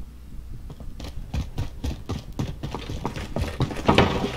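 Footsteps climb stairs.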